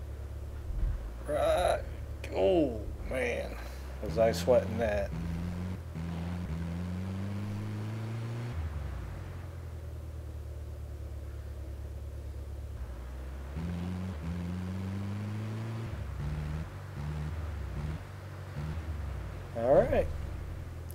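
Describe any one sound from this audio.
A vehicle engine hums and revs up and down.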